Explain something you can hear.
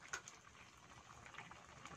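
A metal spatula scrapes and stirs in a pan.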